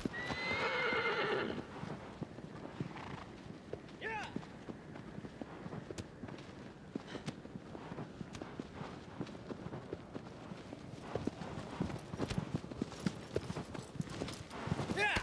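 Horse hooves pound steadily on soft ground at a gallop.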